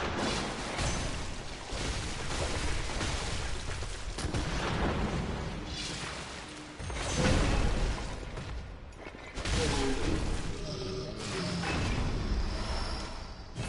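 A monster grunts and roars.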